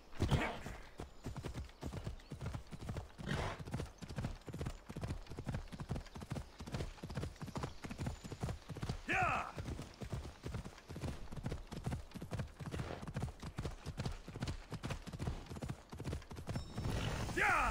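Horse hooves gallop in a quick, steady rhythm on a dirt path.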